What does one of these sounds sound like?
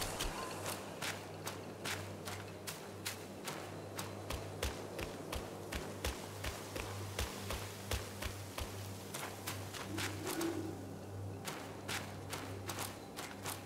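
Footsteps run quickly over ground and stone steps.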